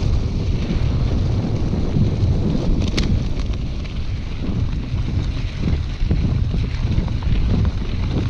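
Wind rumbles loudly against a microphone as a bike speeds along.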